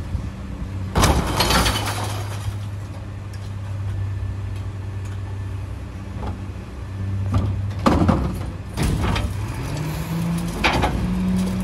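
A plastic bin bangs and rattles against a garbage truck as it is lifted and tipped.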